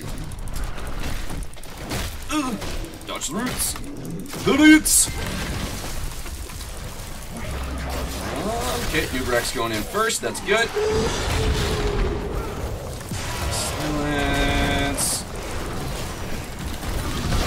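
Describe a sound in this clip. Game battle effects clash and burst.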